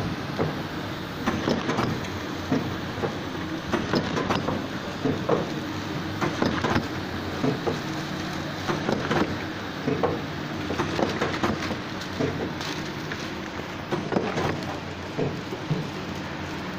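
A packaging machine clicks and clatters in a quick, uneven rhythm.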